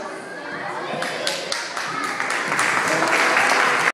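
A woman claps her hands.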